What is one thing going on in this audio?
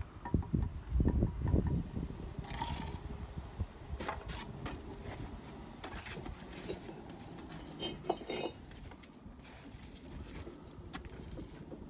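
A trowel taps and scrapes on bricks and mortar.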